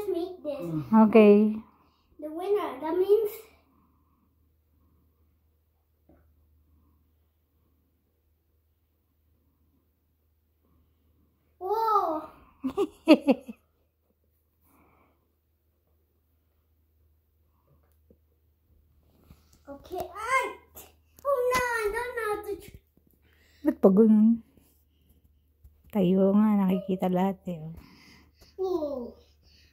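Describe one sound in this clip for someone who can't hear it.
A small boy talks and squeals excitedly nearby.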